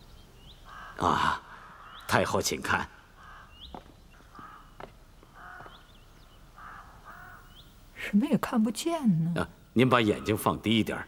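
An elderly man speaks calmly and quietly nearby.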